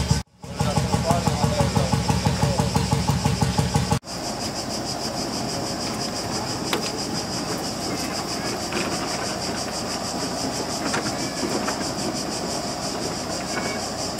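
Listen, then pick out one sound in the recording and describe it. A large old engine chugs with a steady rhythmic beat.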